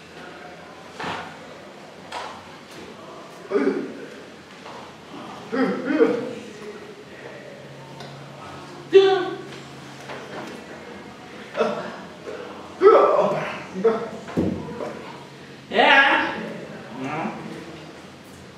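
A man speaks in short, loud bursts with pauses between them, close by.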